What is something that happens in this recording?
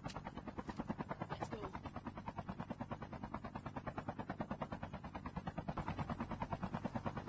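A helicopter's rotor thumps rapidly and loudly close by.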